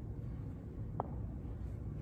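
Glass clinks lightly against a metal cup.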